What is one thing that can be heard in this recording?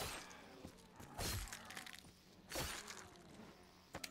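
Guns fire in sharp bursts.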